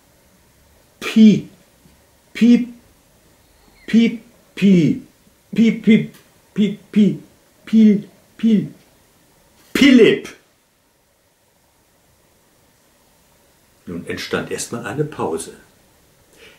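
An elderly man reads aloud slowly and deliberately, close by, with long pauses between phrases.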